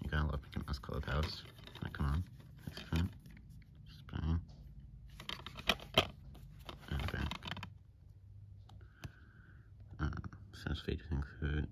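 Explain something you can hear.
A plastic case rattles and clicks in a hand.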